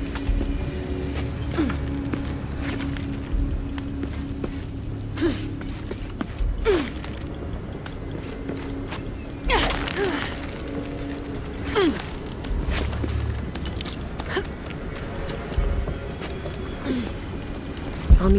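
Hands and boots scrape and thud against stone while climbing.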